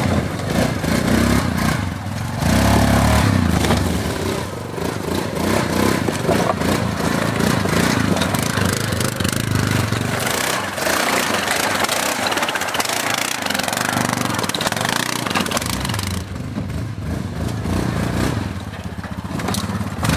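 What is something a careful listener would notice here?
An all-terrain vehicle engine idles and revs as the vehicle crawls over rough ground.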